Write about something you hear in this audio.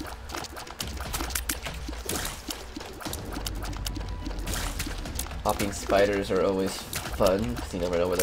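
Soft game shots pop and splat rapidly.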